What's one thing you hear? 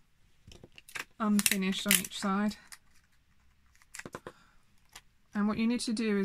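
Scissors snip through plastic.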